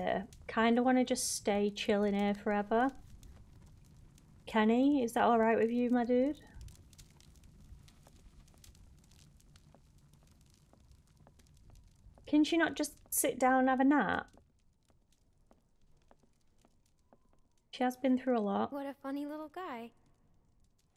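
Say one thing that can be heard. A young woman speaks with animation through a microphone, in short bursts.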